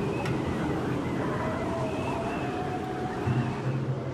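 Wind blows hard, sweeping snow across open ground.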